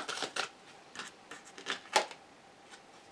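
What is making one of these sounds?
Playing cards rustle as they are shuffled by hand.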